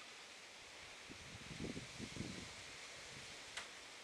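A wooden door rattles as it is opened.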